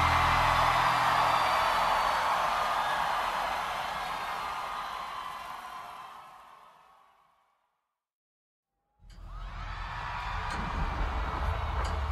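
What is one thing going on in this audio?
A bass guitar plays loudly.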